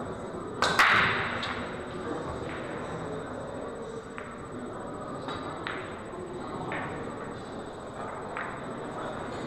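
Pool balls click against each other and thud off the cushions as they roll.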